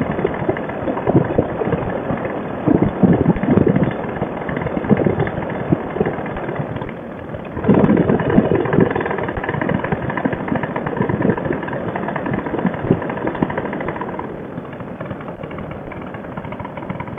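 A paramotor engine drones steadily close by.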